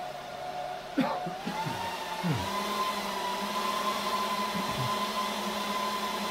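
Computer fans spin up and whir louder and higher.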